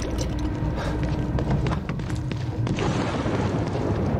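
Footsteps run on wet pavement.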